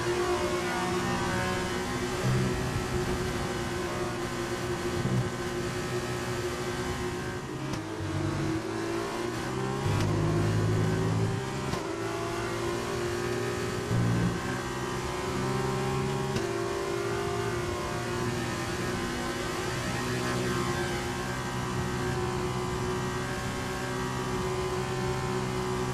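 A racing car engine roars at high revs, dropping and rising as the car brakes and accelerates.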